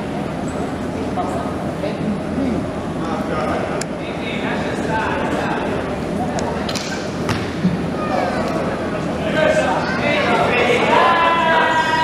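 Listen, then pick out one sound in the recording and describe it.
Wheelchair wheels squeak and rumble on a hard court in a large echoing hall.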